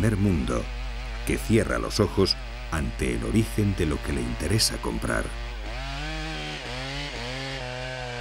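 A chainsaw engine roars as it cuts into a tree trunk.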